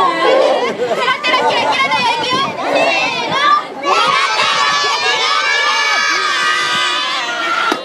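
A woman speaks in a shrill, theatrical voice close by.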